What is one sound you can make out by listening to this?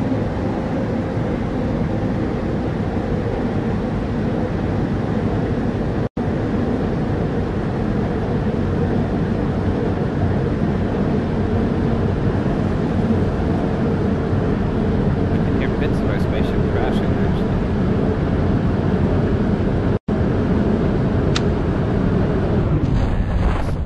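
A rocket engine roars steadily, then cuts out.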